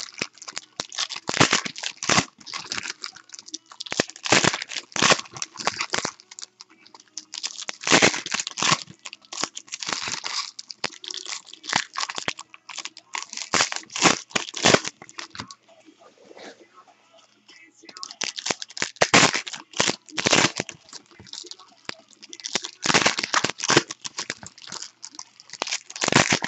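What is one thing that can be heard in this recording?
Foil wrappers crinkle and rustle close by.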